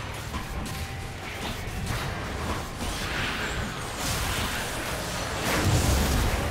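Magic blasts whoosh and crash in a video game battle.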